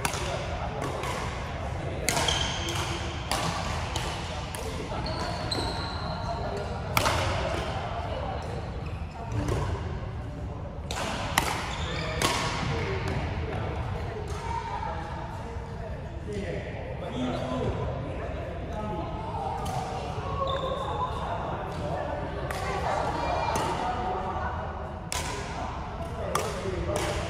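Badminton rackets hit a shuttlecock back and forth with sharp pops in an echoing hall.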